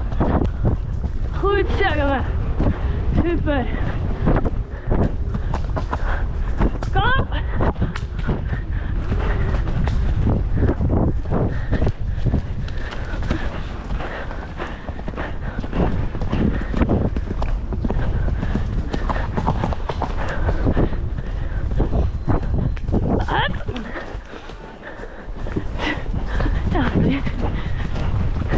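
A horse's hooves thud rhythmically on a soft dirt track.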